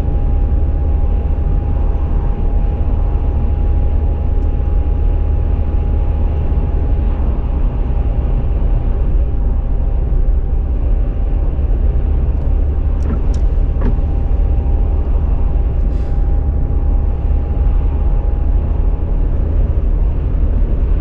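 A car's engine hums steadily as the car drives along a road.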